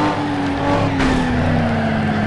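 Cars crash and scrape against each other.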